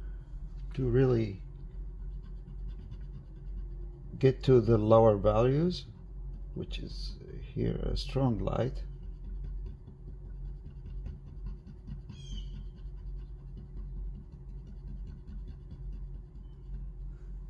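A charcoal pencil softly scratches on paper.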